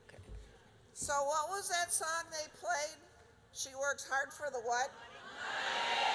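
An older woman speaks loudly and with animation into a microphone.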